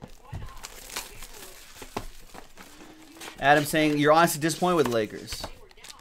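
Cardboard packaging rustles and taps as it is handled.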